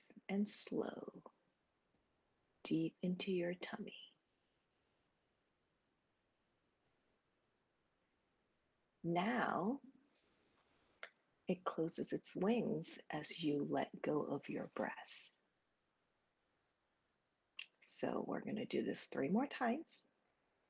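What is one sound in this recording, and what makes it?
A young woman speaks calmly and clearly into a microphone, heard through an online call, with pauses between phrases.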